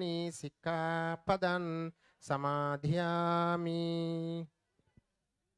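A group of men chant in long, steady tones, then fall silent.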